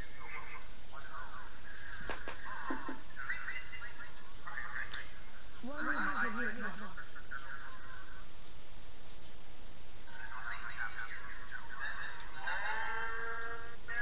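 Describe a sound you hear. A young man talks with animation through a microphone.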